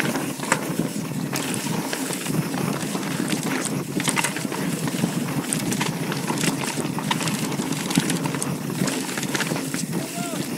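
Bicycle tyres crunch and rumble over dirt and rock.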